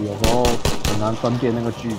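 Pistol shots fire in quick succession.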